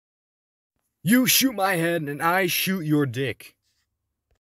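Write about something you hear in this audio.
A young man speaks animatedly up close.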